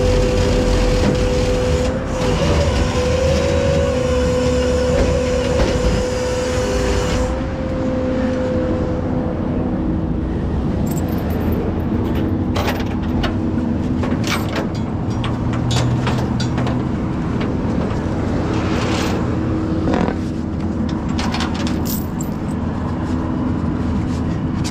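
Traffic rumbles past steadily outdoors.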